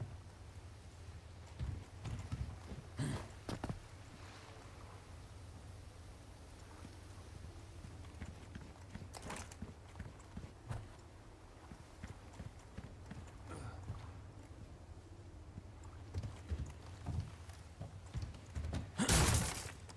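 Footsteps crunch over dirt and debris.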